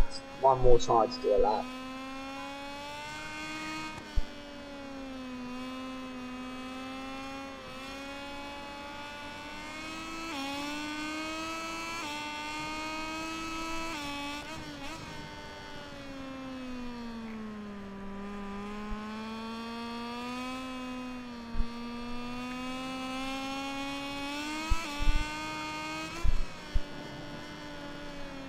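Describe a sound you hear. A motorcycle engine whines steadily, rising and falling in pitch as it speeds up and slows through the bends.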